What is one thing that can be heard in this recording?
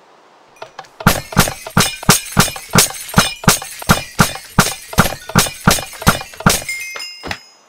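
A sword swings and strikes in quick, sharp, loud blows.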